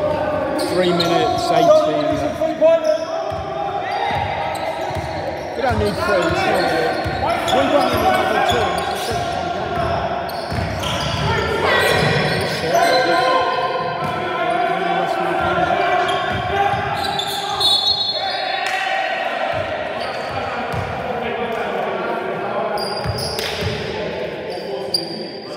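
Men shout to each other across the echoing hall.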